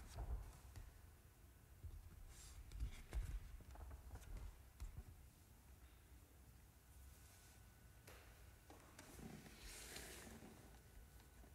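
Sheet music pages rustle as they are turned.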